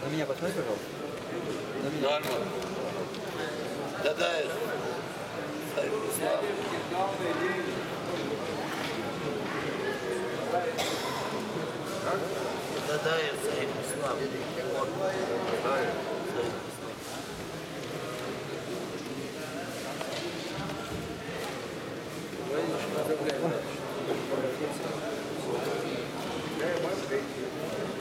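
Many men talk at once in a large echoing hall.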